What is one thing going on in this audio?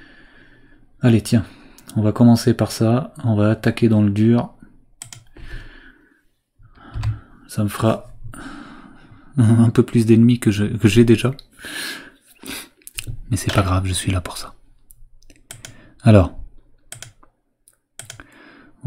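A man speaks close to a microphone, calmly and with pauses.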